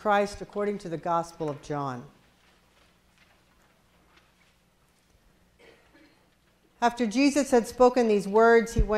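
A woman reads aloud in a slow, chanting voice through a microphone in an echoing hall.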